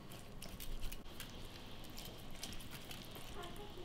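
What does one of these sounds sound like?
A pastry brush dabs and swishes softly over raw chicken skin.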